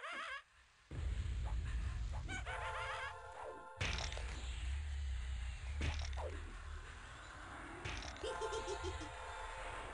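A magic spell bursts with a loud crackling whoosh.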